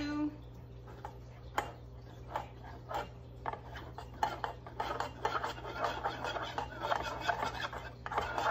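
A paintbrush taps and scrapes against a metal tray.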